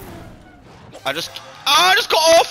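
A game jingle plays a bright fanfare for a finish.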